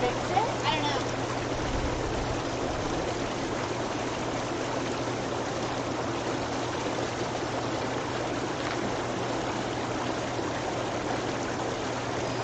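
Water bubbles and churns steadily in a hot tub.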